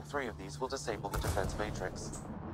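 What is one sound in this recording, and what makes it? An explosion bursts with a deep rumble.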